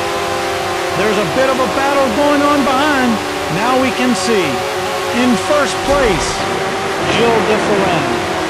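Another racing car's engine whooshes past close by.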